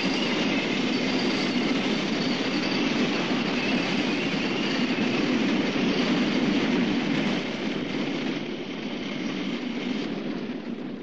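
Tank engines rumble and tracks clatter across the ground.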